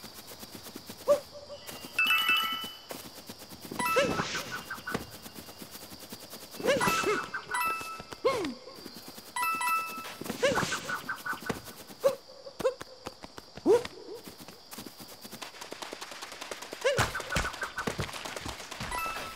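Short springy sound effects play as a cartoon character hops about.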